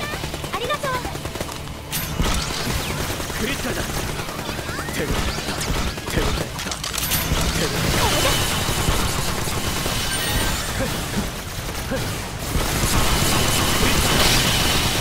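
Magic spells fire and burst with sharp zaps.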